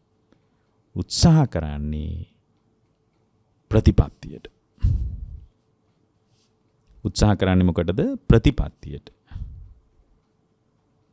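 A man speaks calmly and slowly into a microphone, with pauses.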